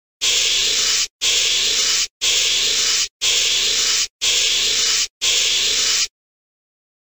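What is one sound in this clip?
A balloon lets out air in a run of short, loud hissing bursts.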